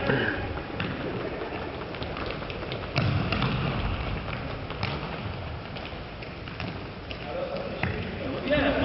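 A ball is kicked with sharp thuds that echo in a large hall.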